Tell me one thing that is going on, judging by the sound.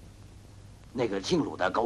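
An older man speaks firmly, close by.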